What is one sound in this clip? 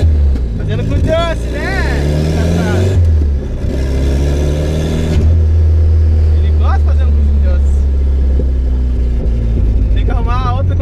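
A car engine drones and revs up steadily through the gears.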